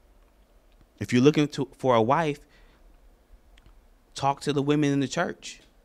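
A man speaks calmly and with emphasis into a microphone.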